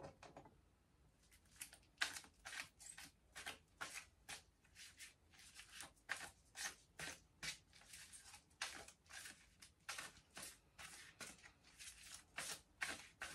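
Playing cards rustle and snap as they are shuffled close by.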